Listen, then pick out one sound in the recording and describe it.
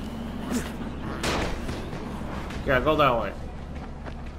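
A creature snarls and growls up close.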